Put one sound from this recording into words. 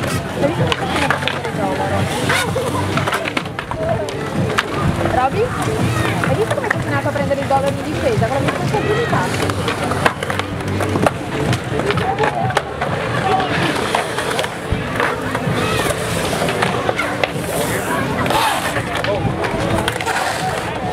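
Skateboard wheels roll and rumble over concrete.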